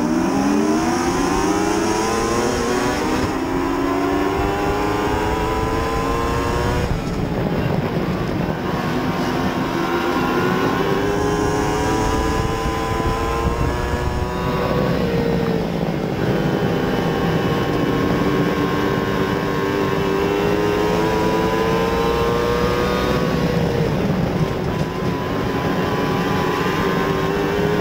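A race car engine roars loudly up close, its pitch rising and falling as it revs and shifts.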